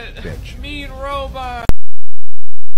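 A young man makes a strained, choking vocal sound close by.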